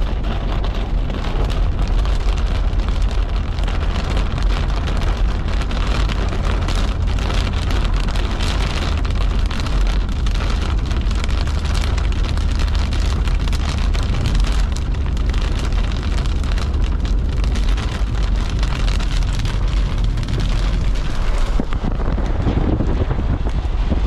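A car rumbles low as it drives along a wet road.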